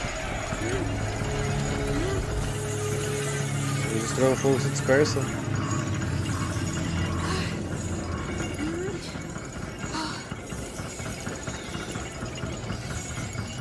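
A wooden winch creaks as it turns.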